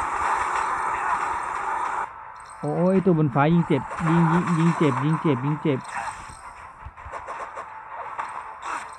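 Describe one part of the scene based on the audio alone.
Sword slashes whoosh and strike in quick succession.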